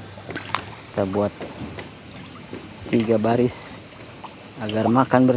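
Water laps and ripples gently.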